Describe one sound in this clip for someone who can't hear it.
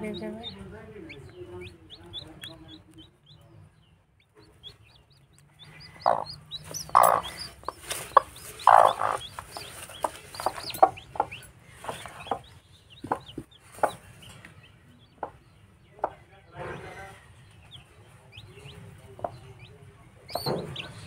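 Chicks peep in short, high chirps close by.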